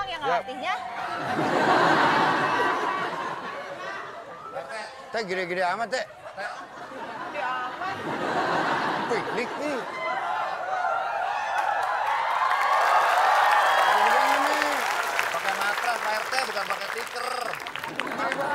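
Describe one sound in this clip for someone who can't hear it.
A studio audience laughs loudly.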